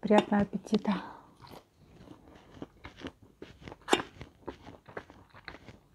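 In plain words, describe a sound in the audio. Crispy fried food crunches as a woman chews.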